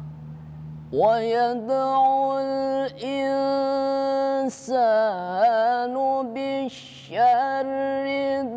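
A young man chants a recitation in a long, melodic voice, close by.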